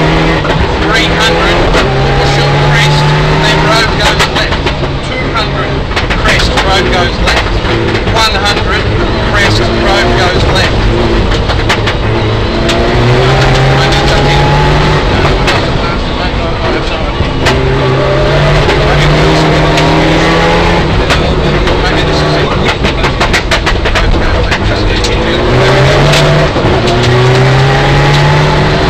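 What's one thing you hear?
A rally car engine roars and revs up and down.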